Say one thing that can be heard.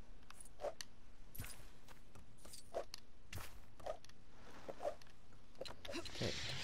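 Short metallic clinks and pings sound in quick succession.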